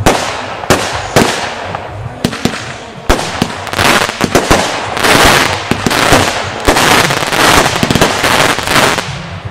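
Fireworks burst with sharp bangs and pops.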